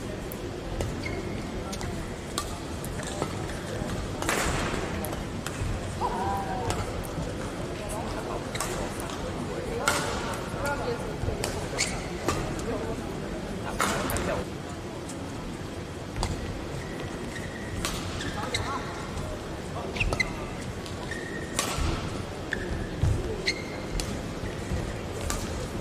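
Rackets strike a shuttlecock in a quick rally.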